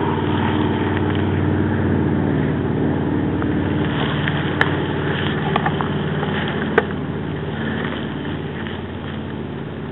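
Footsteps crunch through dry brush and twigs close by.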